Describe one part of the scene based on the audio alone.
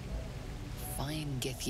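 A woman speaks briefly and casually, close to a microphone.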